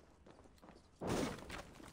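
A wooden crate breaks with a loud crack.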